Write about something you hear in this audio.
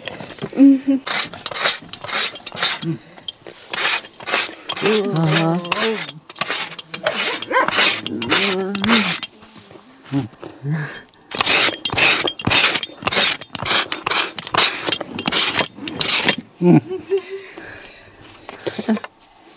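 A wooden scraper rasps repeatedly against an animal hide.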